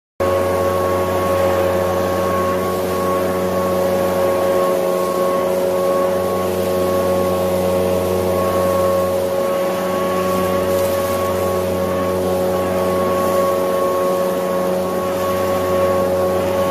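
A leaf blower roars steadily.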